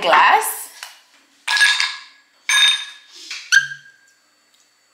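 Ice cubes clatter into a glass.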